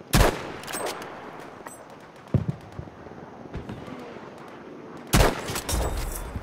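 A rifle fires loud, sharp shots that echo.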